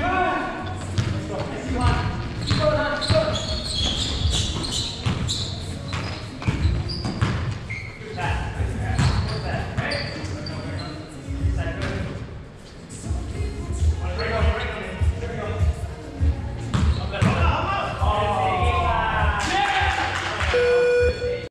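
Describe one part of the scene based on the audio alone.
Young men shout and call out to each other in the echoing gym.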